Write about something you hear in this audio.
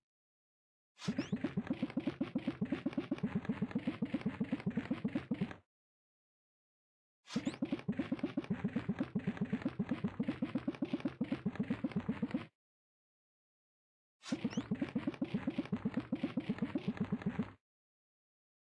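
A knife slices rapidly through soft fish with quick, repeated cutting sounds.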